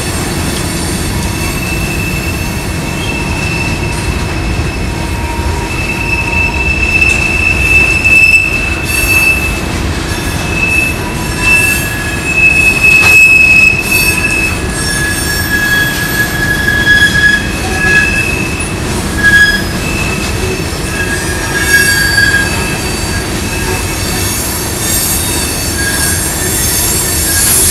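Steel wheels squeal on a curve.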